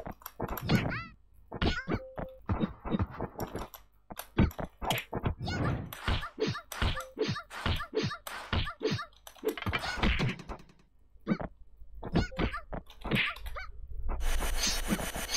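Blows land with sharp thuds and slaps in a fast fight.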